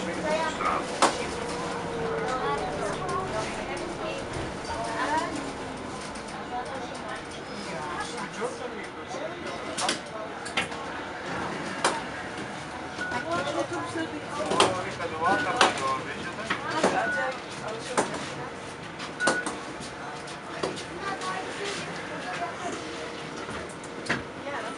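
Bus fittings clatter and knock sharply now and then.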